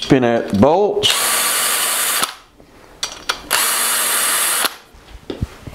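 A power driver whirs in short bursts.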